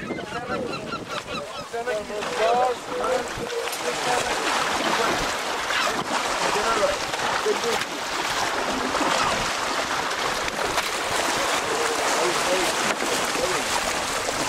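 A large fish thrashes and splashes loudly at the surface.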